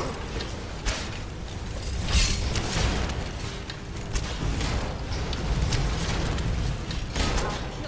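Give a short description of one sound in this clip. Monsters clash and hit one another with loud thuds and crashes.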